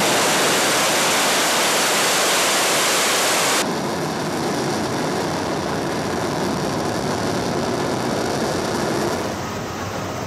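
A rocket engine roars loudly during launch.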